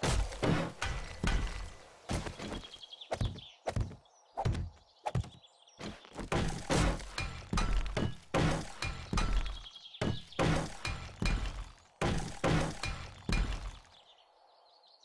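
Repeated heavy blows knock against wood.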